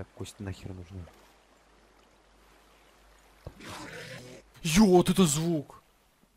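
Water splashes and gurgles close by.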